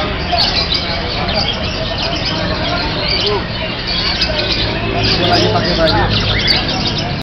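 A crowd of men chatters in the background outdoors.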